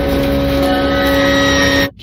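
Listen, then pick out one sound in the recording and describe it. A woman screams in anguish.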